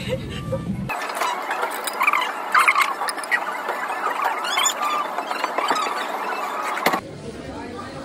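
Chopsticks and spoons clink against ceramic bowls.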